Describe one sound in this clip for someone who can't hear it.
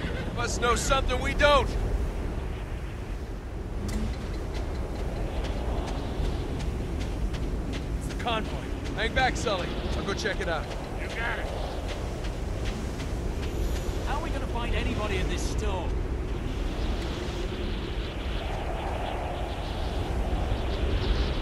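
Wind blows hard and steadily outdoors.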